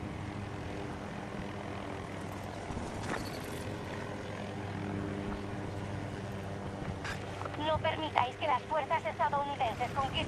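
A helicopter engine drones steadily with a low rotor thrum.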